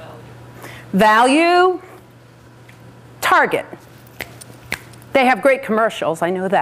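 A woman speaks with animation through a microphone, pausing between phrases.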